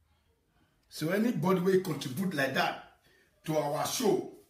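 A young man raps loudly into a close microphone.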